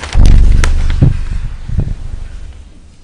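Loud thumps and rustling sound close to a microphone.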